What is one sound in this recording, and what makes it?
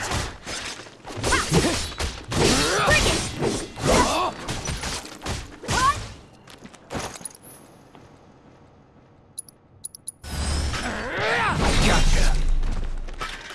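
A heavy sword slashes and clangs against metal.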